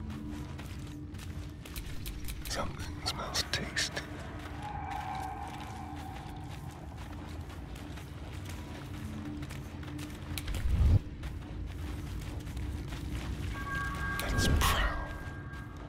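Footsteps scuff softly on rocky ground.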